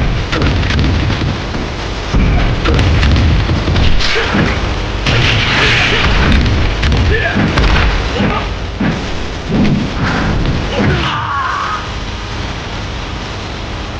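A body crashes heavily to the floor.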